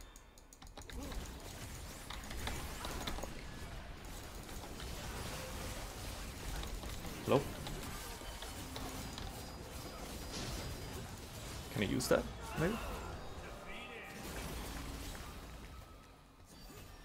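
Game combat effects whoosh, clash and crackle during a fight.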